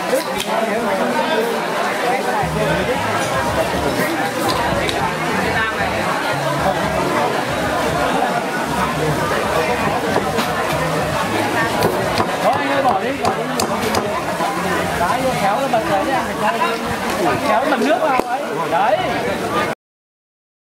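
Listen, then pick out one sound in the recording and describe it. A large crowd of men and women chatter loudly all at once.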